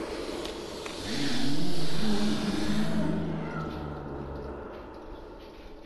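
A monster growls with a deep, rumbling voice.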